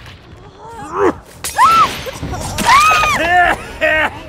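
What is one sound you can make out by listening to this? A blade strikes with a sharp thud.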